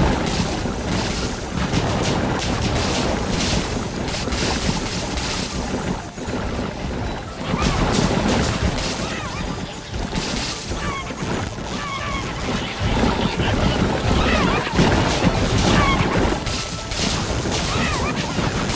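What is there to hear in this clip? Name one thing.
Game sound effects of shots, zaps and impacts crackle and pop in a dense, busy stream.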